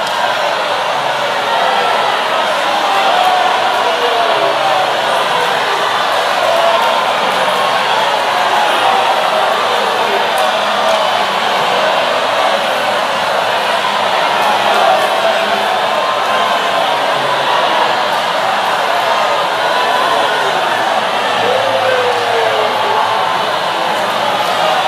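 A large crowd of women prays aloud and cries out all at once, echoing in a large hall.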